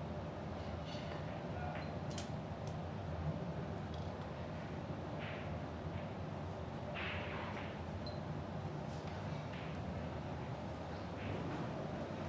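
Billiard balls clack together on a table.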